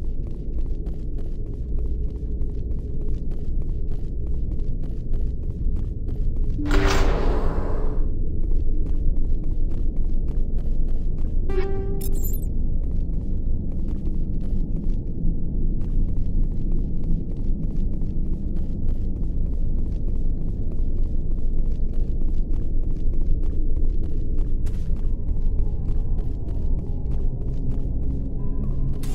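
Footsteps tread steadily on a hard floor.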